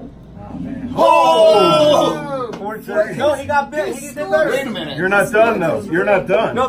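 A man laughs and exclaims loudly close by.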